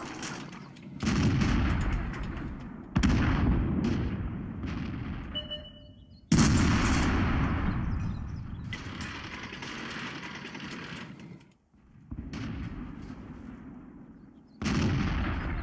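Tank guns fire with loud booming blasts.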